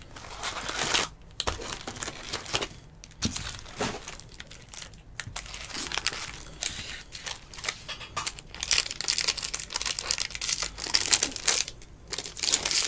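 Plastic wrapping crinkles and rustles as hands tear open a pack of cards.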